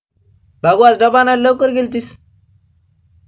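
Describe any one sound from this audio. A woman speaks loudly and urgently close by.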